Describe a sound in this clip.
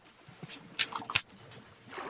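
Bubbles gurgle up through water.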